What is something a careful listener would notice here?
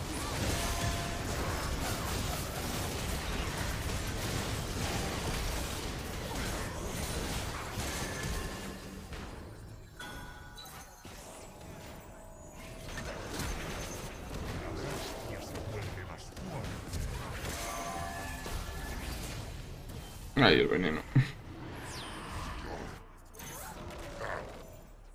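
Game sound effects clash and ring out.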